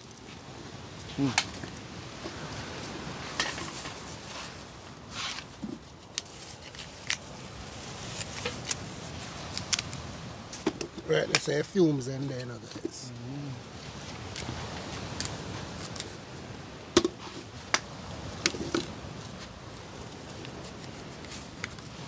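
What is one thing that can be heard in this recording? A knife cuts and scrapes coconut with sharp clicks.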